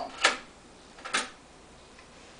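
Buttons click on a stereo unit.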